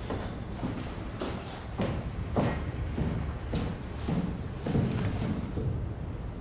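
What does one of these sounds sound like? Footsteps clang on a metal floor at a steady walking pace.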